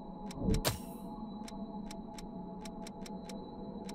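A game menu cursor clicks as the selection moves.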